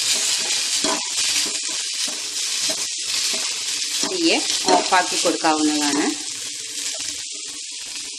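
A spatula scrapes and clatters against a metal pan.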